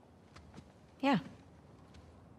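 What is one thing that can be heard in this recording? A young woman answers briefly.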